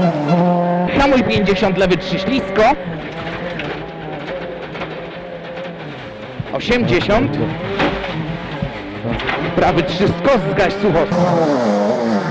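A rally car engine roars from inside the cabin as the car speeds along.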